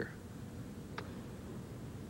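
A cue stick strikes a ball with a sharp click.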